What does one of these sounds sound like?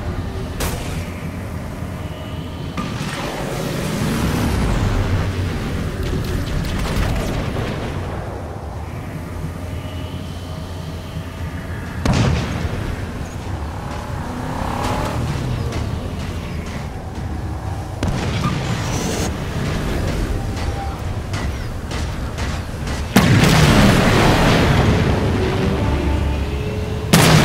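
A small vehicle's engine roars and revs as it drives over rough ground.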